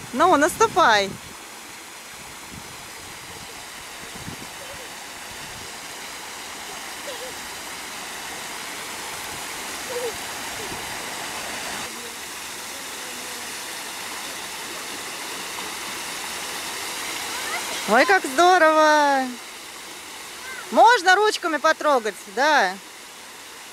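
A toddler girl squeals and babbles close by.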